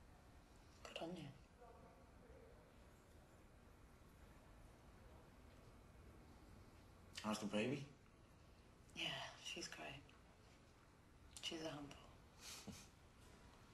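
A young woman speaks quietly and haltingly, close by.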